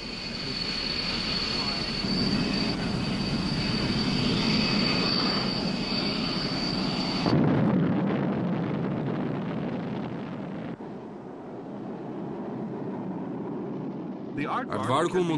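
A jet engine roars loudly as a military jet speeds down a runway.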